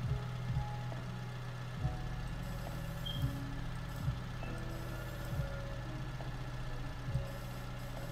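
Metal clunks sharply as a loader's grapple moves.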